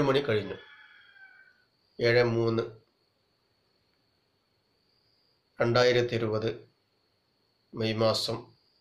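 A man speaks calmly in short phrases close to the microphone, with pauses between them.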